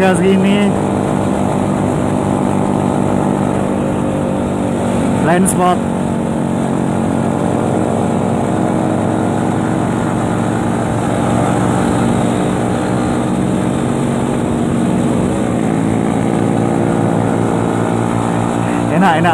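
A motorcycle engine drones steadily close by, revving up now and then.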